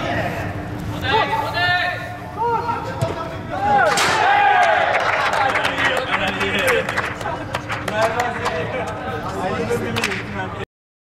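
Young men shout across a large echoing hall.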